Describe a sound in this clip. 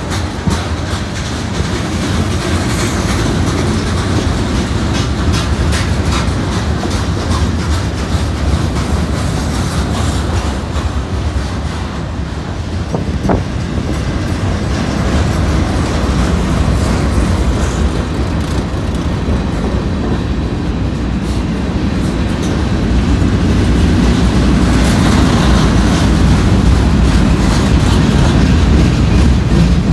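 A long freight train rumbles past close by, its wheels clattering on the rails.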